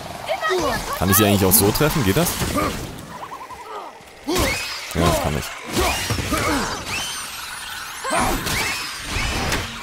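An axe strikes and thuds into a creature again and again.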